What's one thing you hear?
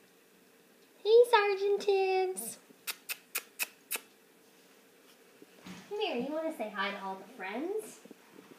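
A young child speaks excitedly close by.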